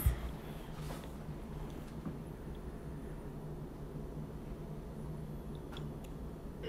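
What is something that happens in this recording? A marker tip squeaks and scratches softly on a paper plate.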